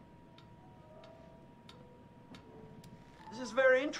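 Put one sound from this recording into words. A metronome ticks steadily.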